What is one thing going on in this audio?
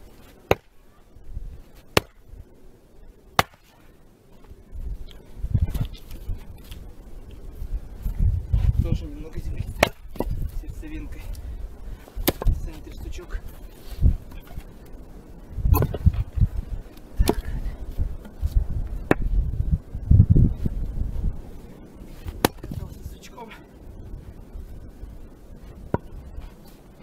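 An axe splits firewood with sharp cracks.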